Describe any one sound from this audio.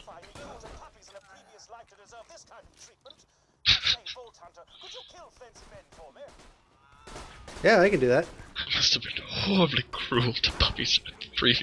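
A gun fires repeated shots.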